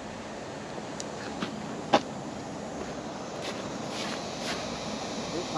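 Footsteps tap on paving outdoors.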